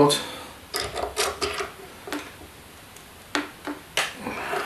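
A screwdriver scrapes and clicks against a small metal screw.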